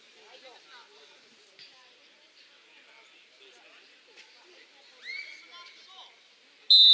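Players call out to each other at a distance outdoors.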